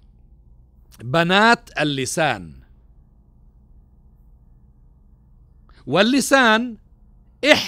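A middle-aged man speaks with animation into a microphone, with pauses.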